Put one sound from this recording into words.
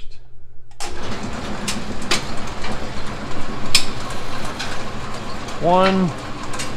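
Belts and pulleys whir as the machine runs.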